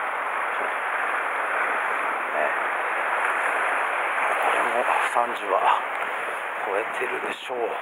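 Waves crash and wash over rocks nearby.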